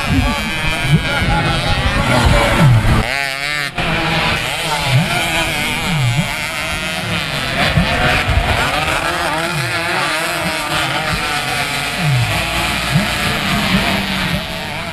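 Dirt bike engines rev and whine loudly, rising and falling in pitch.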